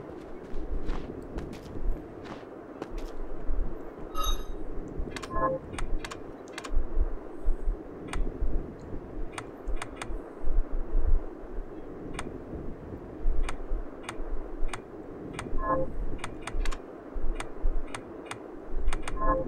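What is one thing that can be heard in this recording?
Short menu clicks tick again and again as options are selected.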